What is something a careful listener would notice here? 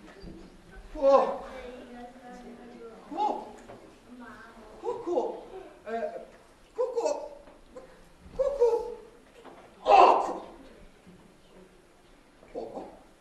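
A man speaks in a lively, animated character voice.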